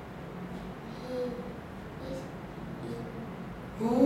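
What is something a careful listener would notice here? A young girl answers softly.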